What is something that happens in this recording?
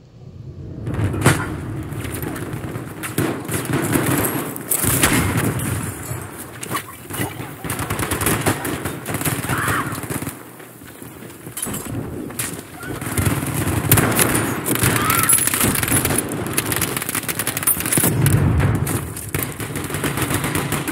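Rifle shots crack loudly and repeatedly.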